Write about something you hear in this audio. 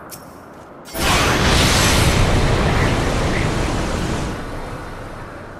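A loud rushing whoosh sweeps through as a character flies.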